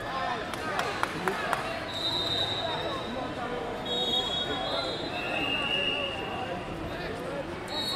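Wrestlers' shoes squeak on the mat.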